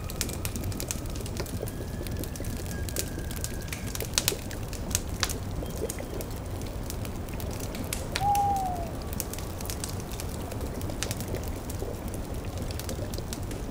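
A fire crackles and pops steadily.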